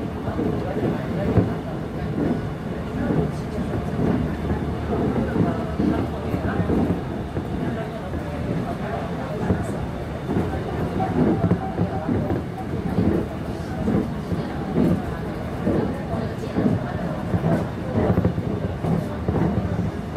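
A train rumbles along the tracks, heard from inside a carriage.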